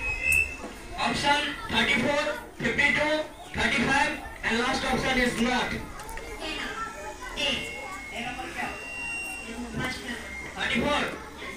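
A young man speaks into a microphone with animation, heard through a loudspeaker.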